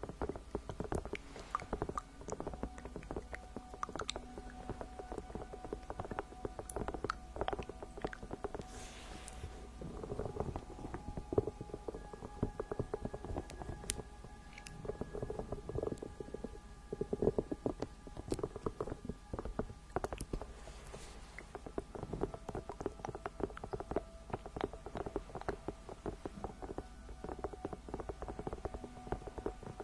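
A young woman whispers softly close to a microphone.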